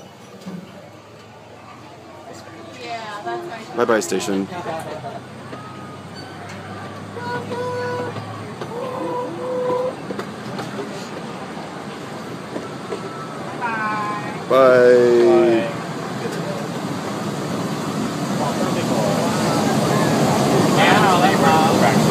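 A small open train rumbles along its track.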